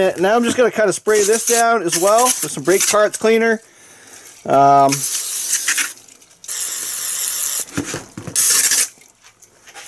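A spray can hisses in short bursts.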